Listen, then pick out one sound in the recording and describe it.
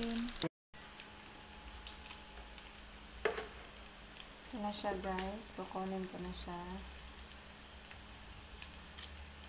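A metal spatula clinks and scrapes against a plate.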